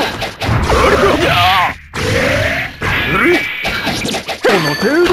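Magic blasts whoosh and shimmer in quick bursts.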